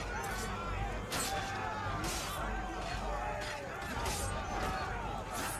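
Swords clash and strike in quick, sharp blows.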